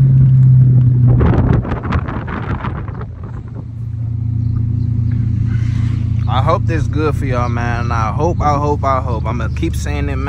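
A muscle car's V8 engine rumbles, heard from inside the cabin as the car drives.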